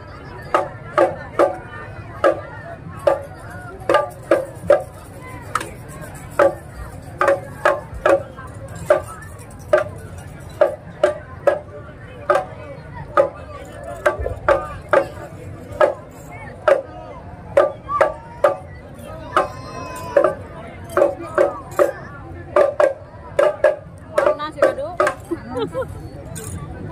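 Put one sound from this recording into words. Drums beat along with a marching band.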